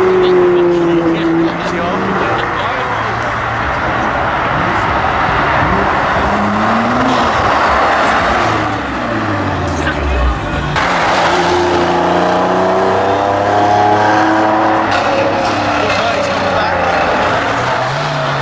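A sports car engine roars loudly as it accelerates past.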